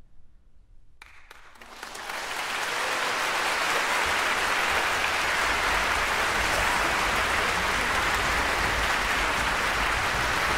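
An audience in a large hall breaks into loud, steady applause.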